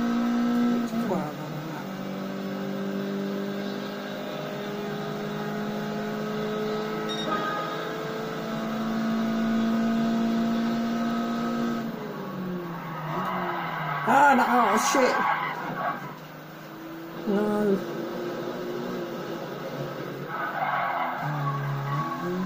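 A racing car engine hums steadily and shifts in pitch as the car speeds up and slows down.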